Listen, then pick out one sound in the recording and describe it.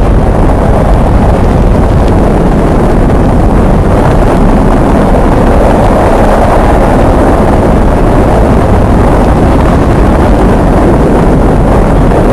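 Saturn V rocket engines roar with a deep, rumbling thunder at ignition.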